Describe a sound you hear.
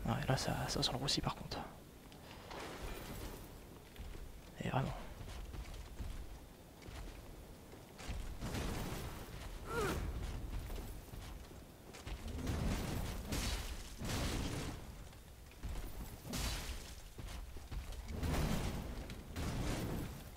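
Metal weapons clash and strike armour in a fight.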